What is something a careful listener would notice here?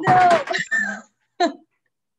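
A woman laughs loudly over an online call.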